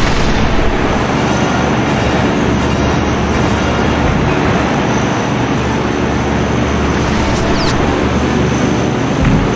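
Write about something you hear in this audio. Jet engines roar steadily and loudly.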